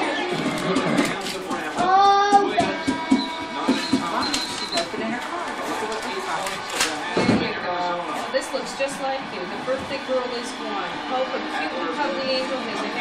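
Wrapping paper rustles and crinkles as a gift is opened.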